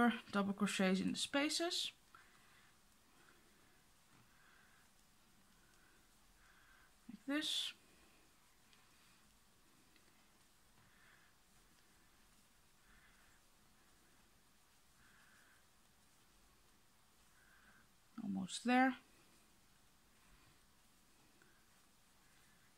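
A crochet hook softly rustles and pulls through yarn.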